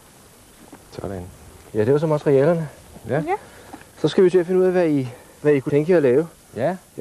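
A middle-aged man speaks with animation close by, outdoors.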